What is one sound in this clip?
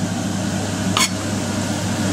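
A knife scrapes across a cutting board.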